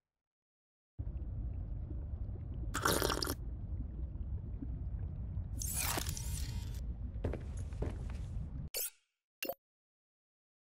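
Short electronic blips sound now and then.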